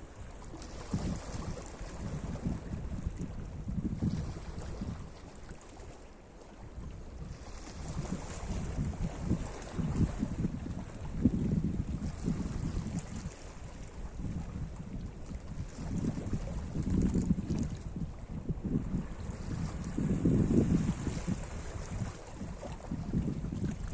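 Small waves lap and wash over rocks along the shore.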